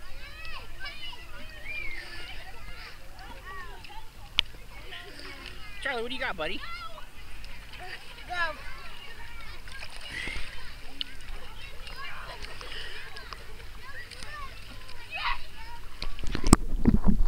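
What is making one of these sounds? Children shout and squeal across an outdoor pool.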